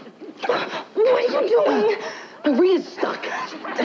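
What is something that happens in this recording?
A young woman cries out in distress close by.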